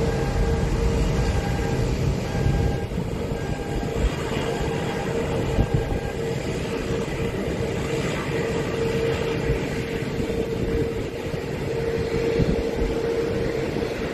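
A Boeing 787 jet airliner taxis, its turbofan engines whining and roaring.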